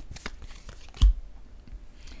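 A playing card is set down on a table with a soft thump.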